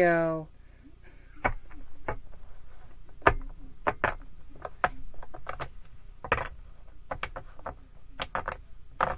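Cards are shuffled with quick, crisp snaps.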